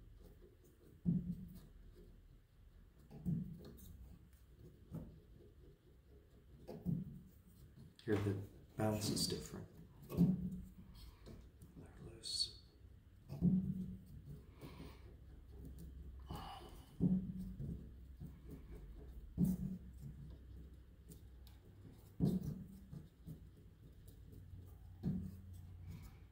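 A wooden tool taps on wooden parts in dull, regular knocks.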